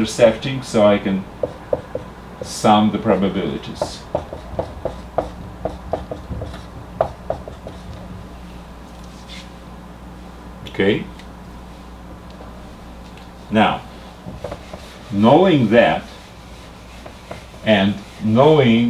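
An older man speaks calmly, as if explaining, close by.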